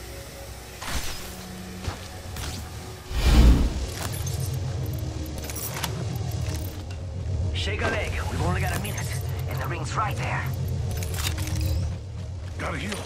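Heavy footsteps thud quickly on the ground in a video game.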